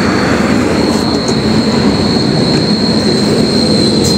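A car door opens.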